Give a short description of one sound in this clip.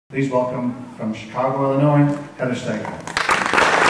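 An older man speaks into a microphone over loudspeakers in a large hall.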